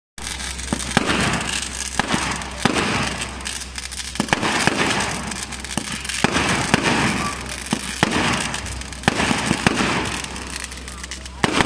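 Fireworks whoosh upward one after another.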